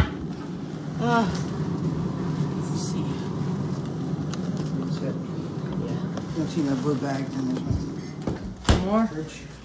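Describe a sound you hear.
A freezer hums steadily with its door open.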